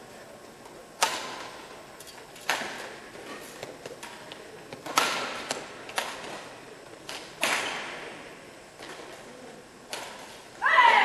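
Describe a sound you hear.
Shuttlecocks are struck with badminton rackets in a large echoing hall.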